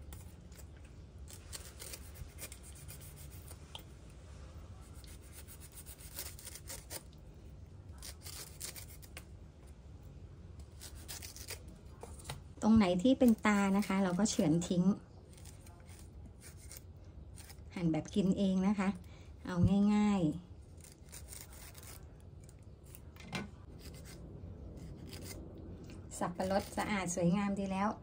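A knife slices through tough fruit rind with soft crunching scrapes.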